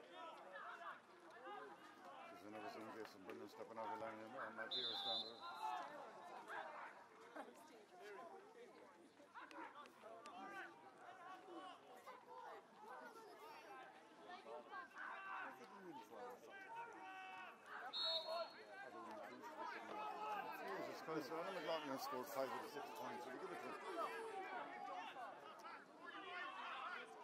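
Men and women nearby talk and call out outdoors.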